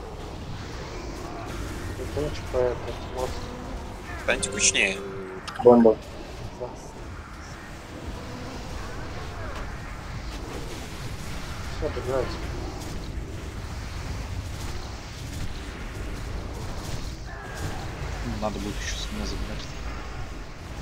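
Magic spells crackle and whoosh during a fantasy battle.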